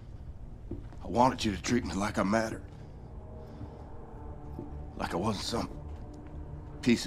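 An elderly man speaks slowly and gravely, up close.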